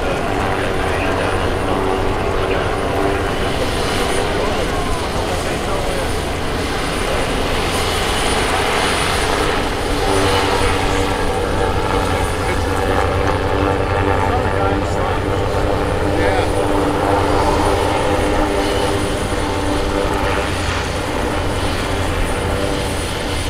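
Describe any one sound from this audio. A blimp's engines drone steadily overhead.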